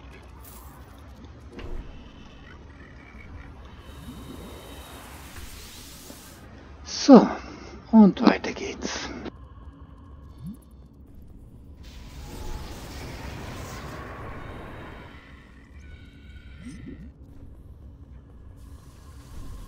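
Magical flames whoosh and crackle.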